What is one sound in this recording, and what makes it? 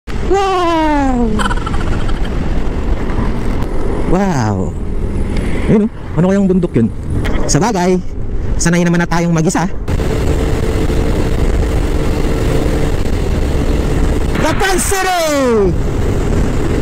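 A motorcycle engine revs hard and drops in pitch with each gear change.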